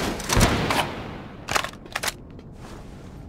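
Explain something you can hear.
A rifle magazine is swapped with sharp metallic clicks.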